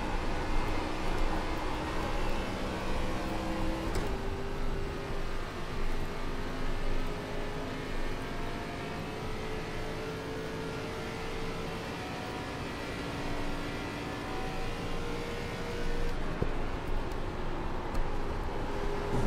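A race car engine roars steadily, its pitch climbing slowly and dropping sharply at a gear change.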